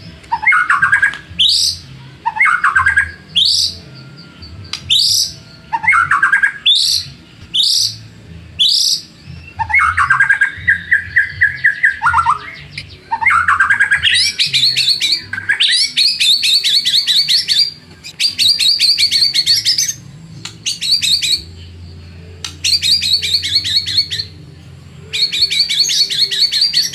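A songbird sings loud, varied phrases of rising whistles and rapid chattering trills, close by.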